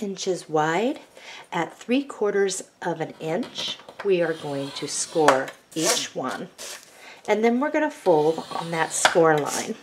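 A plastic tool scrapes along paper.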